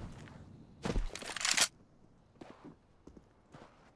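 A rifle is drawn with a metallic rattle.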